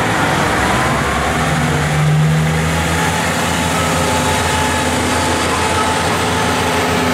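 A diesel train engine rumbles steadily as the train pulls slowly forward.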